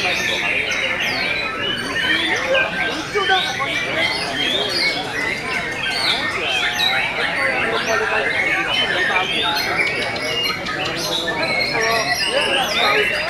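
A songbird sings rapid, varied chirps and whistles close by.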